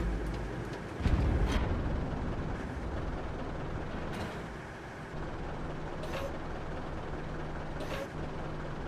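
A tank engine rumbles steadily at idle.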